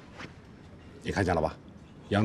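An older man speaks in a low, calm voice close by.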